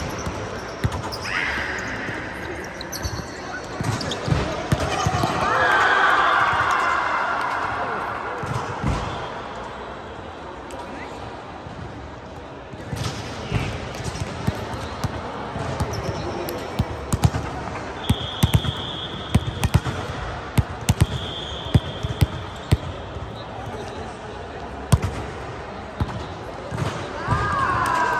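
A volleyball is hit and bounces with sharp smacks in a large echoing hall.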